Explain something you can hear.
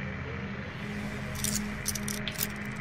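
A pin scrapes and clicks inside a lock.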